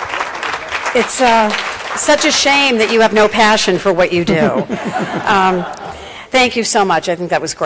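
A woman speaks calmly into a microphone over loudspeakers in a large room.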